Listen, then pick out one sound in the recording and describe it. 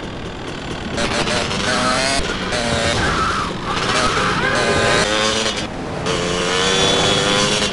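A motorcycle engine revs and roars.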